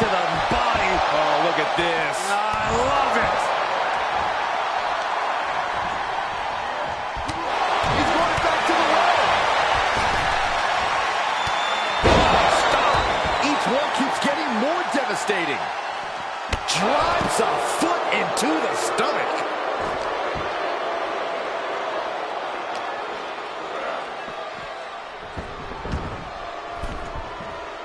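A large crowd cheers and roars throughout in a big echoing arena.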